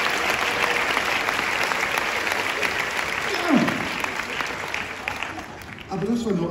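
An audience claps and cheers in a large echoing hall.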